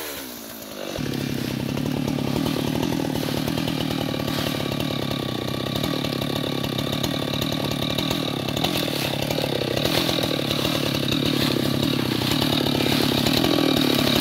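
A chainsaw engine idles with a steady low rumble.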